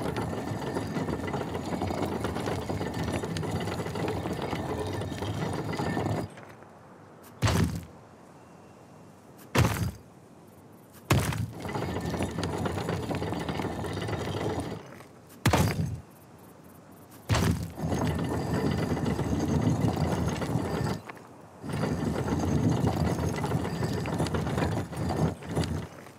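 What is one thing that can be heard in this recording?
Heavy stone rings grind as they turn.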